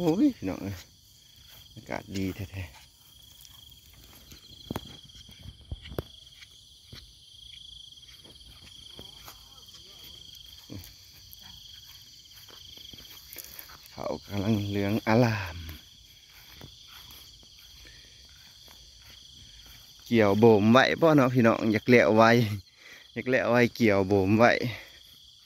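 A boy's footsteps swish through tall grass.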